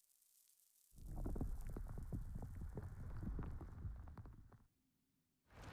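Rock and earth crumble and crack.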